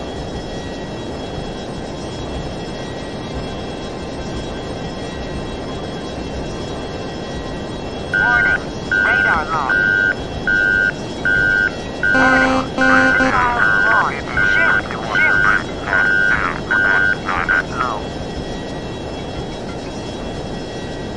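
A fighter jet engine roars, heard from inside the cockpit.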